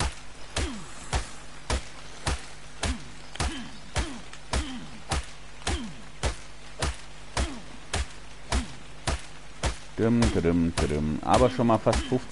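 A hatchet chops repeatedly into flesh with wet, thudding strikes.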